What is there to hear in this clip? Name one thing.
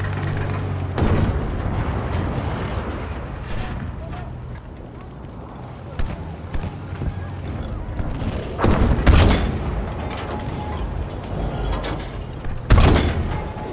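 A tank cannon fires with loud booming blasts.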